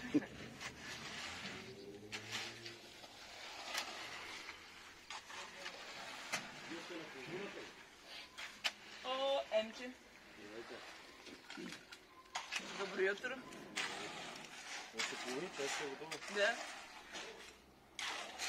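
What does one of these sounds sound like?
A man shovels concrete.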